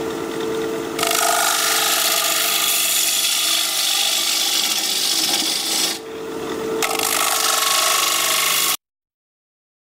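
A chisel scrapes and cuts into spinning wood with a loud rushing hiss.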